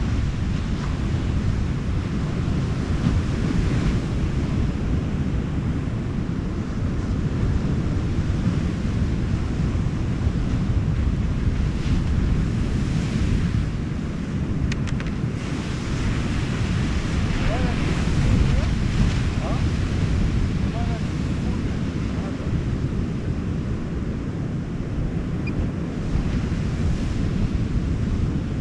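Ocean waves break and wash onto a sandy shore.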